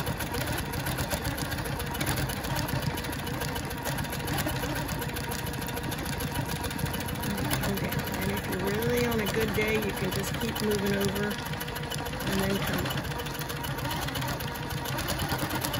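A sewing machine hums and rattles rapidly as it stitches.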